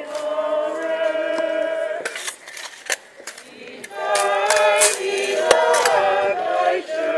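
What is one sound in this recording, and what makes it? A crowd of mourners sings a slow hymn outdoors.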